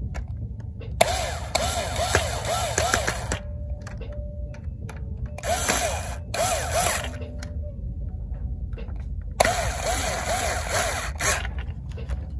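An arcade machine plays a warbling electronic jingle in short bursts.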